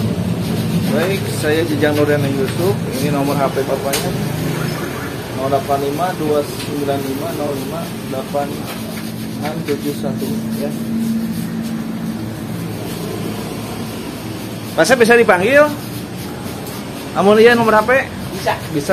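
A young man talks calmly and casually, close to the microphone.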